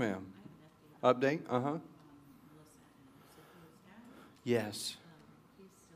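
A middle-aged man speaks calmly into a microphone in a large echoing hall, with pauses between phrases.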